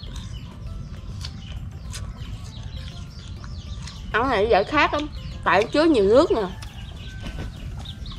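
A young woman chews food close by.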